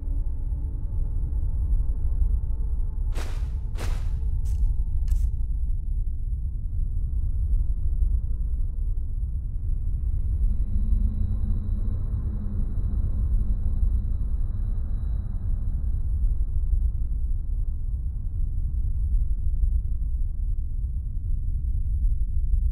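Fire roars and crackles steadily.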